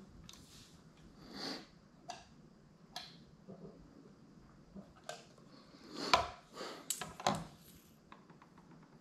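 Small clicks and clatter of equipment being handled close by.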